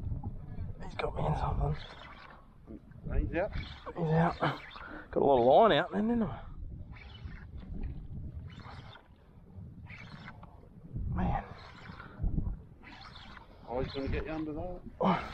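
Water laps and splashes gently close by.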